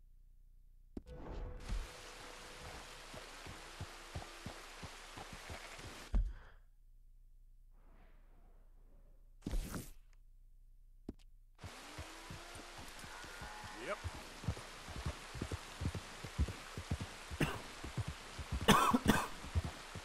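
Horse hooves clop on a muddy track.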